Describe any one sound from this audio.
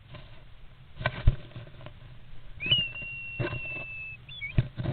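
A starling flutters its wings in a cramped space.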